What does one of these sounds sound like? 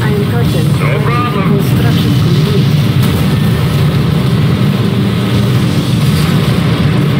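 Heavy engines drone steadily.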